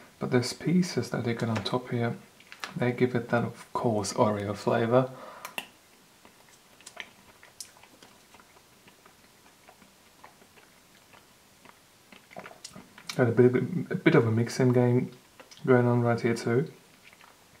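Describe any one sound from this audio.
A metal spoon scrapes and clicks against a plastic cup.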